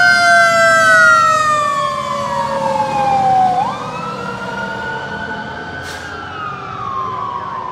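A heavy truck engine rumbles past.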